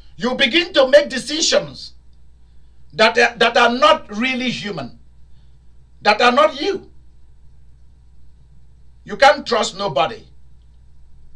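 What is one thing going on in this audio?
A man speaks with animation in short bursts, close by.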